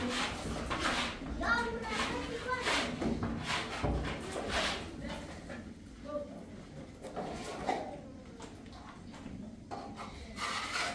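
A trowel scrapes wet plaster across a wall.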